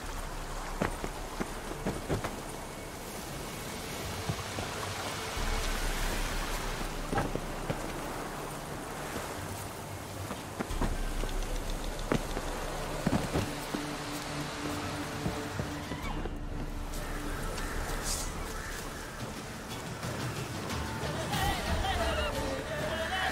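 Footsteps thud on rough ground.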